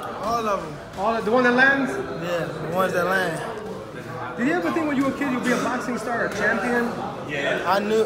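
A young man talks casually, close up.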